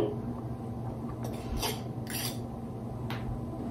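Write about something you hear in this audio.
A wire whisk scrapes against a metal pot.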